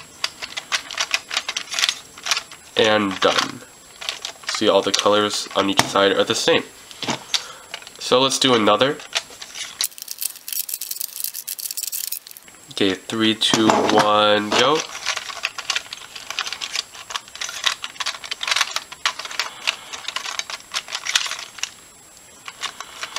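Plastic bricks click and rattle as they are handled and turned.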